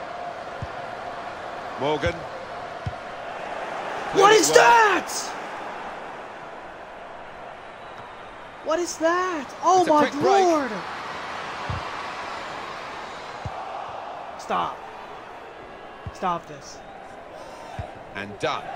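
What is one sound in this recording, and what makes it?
A football is kicked with short, dull thuds.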